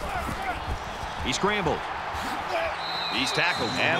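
Football players thud together in a tackle.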